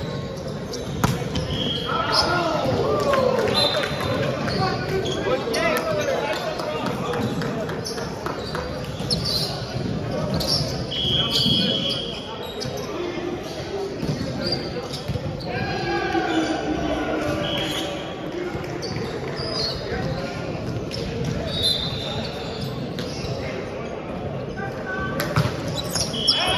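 A volleyball thuds off hands and arms.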